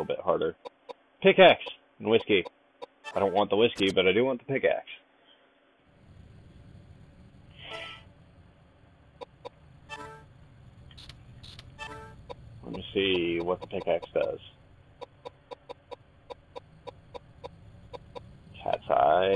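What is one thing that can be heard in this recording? Short electronic blips tick as a menu cursor moves.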